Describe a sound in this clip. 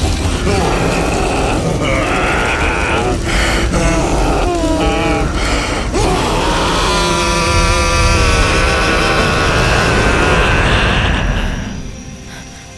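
Flames roar loudly.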